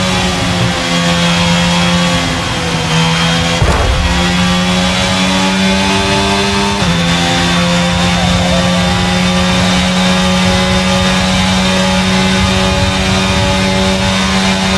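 A racing car engine screams at high revs, shifting gears as it speeds up.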